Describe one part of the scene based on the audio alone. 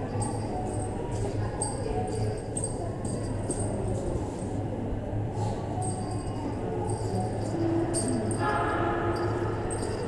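Footsteps tap on a hard floor in a large echoing space.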